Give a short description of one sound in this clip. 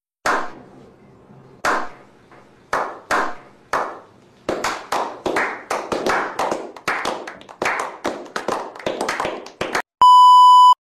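Several men clap their hands, slowly at first and then faster.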